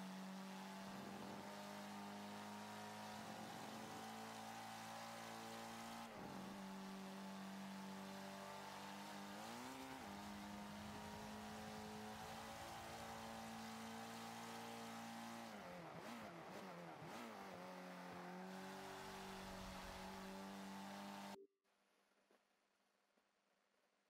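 Tyres screech through a corner.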